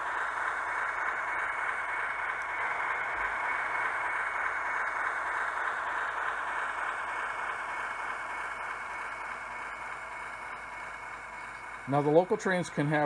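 A small electric train motor whirs steadily, then slowly fades.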